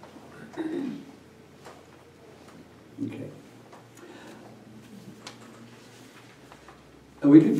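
A middle-aged man speaks calmly and briefly, close to a microphone.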